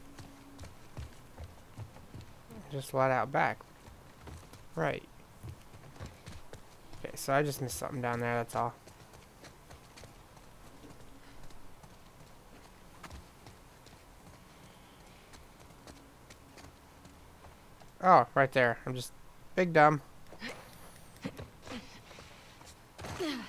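Footsteps patter on the ground at a brisk walk.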